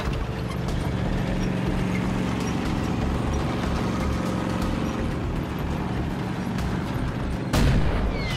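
A tank engine rumbles as it rolls forward.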